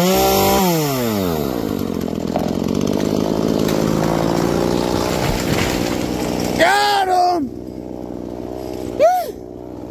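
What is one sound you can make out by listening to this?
A chainsaw engine revs high, then drops to a rough idle.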